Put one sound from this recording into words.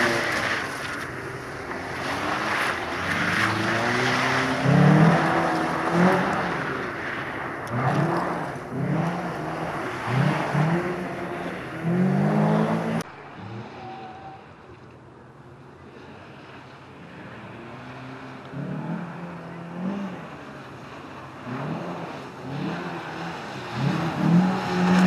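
A car engine revs hard and roars up and down close by.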